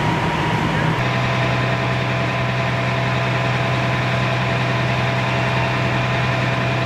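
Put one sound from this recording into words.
A fire truck engine idles with a steady low rumble.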